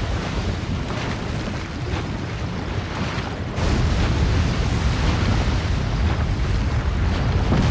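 Molten lava rumbles and bubbles steadily.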